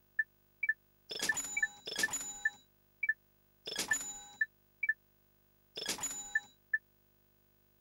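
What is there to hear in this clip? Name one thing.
Short electronic menu beeps blip now and then.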